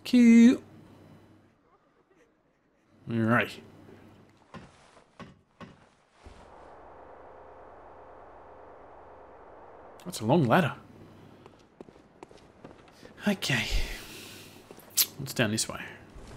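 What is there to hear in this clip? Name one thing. A man talks into a close microphone in short, lively bursts.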